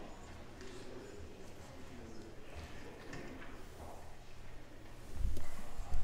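A woman speaks calmly at a distance in a large echoing room.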